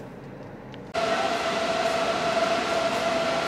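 An electric charger gives off a steady high hum.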